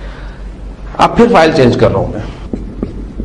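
A man speaks calmly into a nearby microphone.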